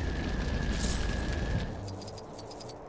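A crackling energy blast fires with a bright, fizzing burst.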